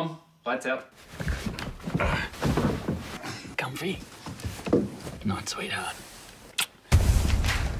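A man speaks softly and warmly, close by.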